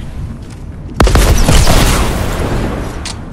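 A video game explosion booms loudly.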